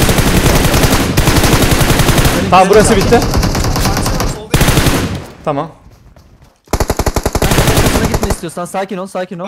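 Rapid automatic gunfire rattles in bursts.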